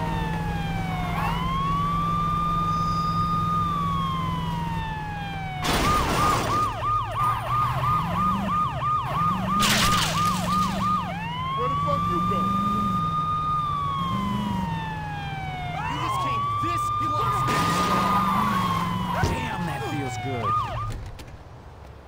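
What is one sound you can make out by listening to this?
A police siren wails, rising and falling, and switches to a rapid yelp.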